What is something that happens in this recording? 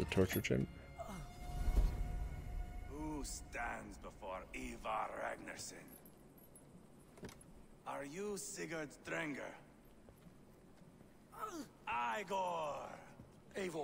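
A man speaks in a deep, menacing voice.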